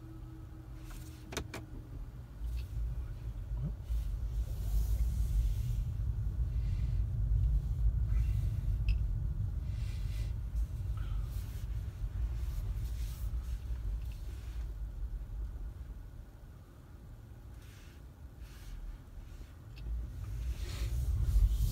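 A car engine rumbles low and steady from inside the car as it drives slowly along a street.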